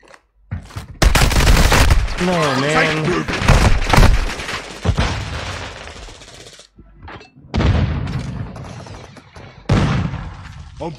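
Gunshots bang loudly in quick bursts.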